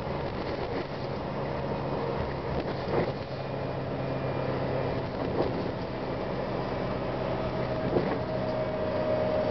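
A bus engine hums steadily from inside the bus as it drives along.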